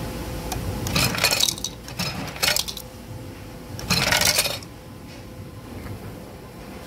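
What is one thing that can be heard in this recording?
Water pours from a dispenser into a glass.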